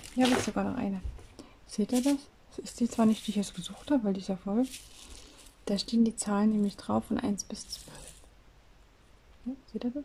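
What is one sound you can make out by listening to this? A plastic case of small beads rattles as it is handled.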